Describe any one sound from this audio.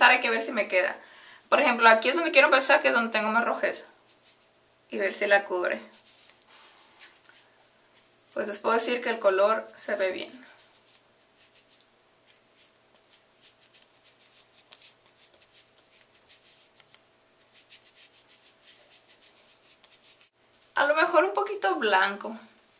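A young woman speaks calmly and close by, in bursts with pauses.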